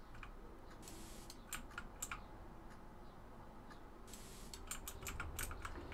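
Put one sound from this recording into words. A paint sprayer hisses in short bursts.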